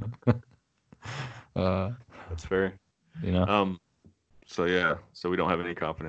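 A man talks cheerfully into a close microphone.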